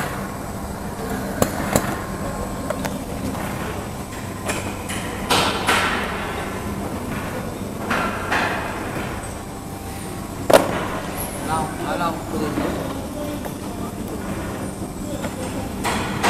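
An automatic cartoning machine clacks and whirs as it runs.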